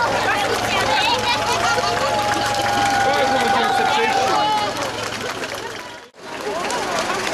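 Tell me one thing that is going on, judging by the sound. A crowd cheers and chatters loudly outdoors.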